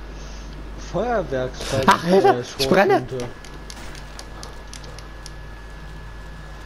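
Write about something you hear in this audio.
Flames crackle and hiss close by.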